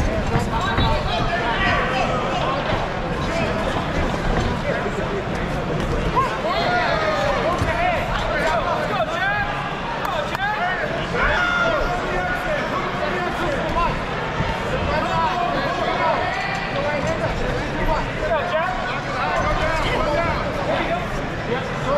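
Boxing gloves thud against a boxer's body and gloves.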